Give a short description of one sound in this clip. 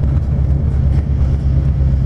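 A bus passes close by.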